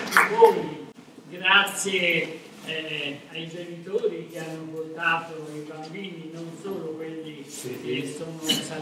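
A woman speaks into a microphone in a large hall.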